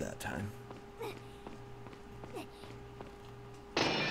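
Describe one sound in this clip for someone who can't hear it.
Footsteps echo on a hard stone floor.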